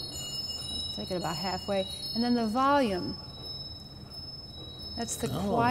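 A woman speaks close by with animation.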